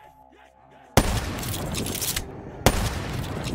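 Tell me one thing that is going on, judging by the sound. A sniper rifle fires loud, sharp shots.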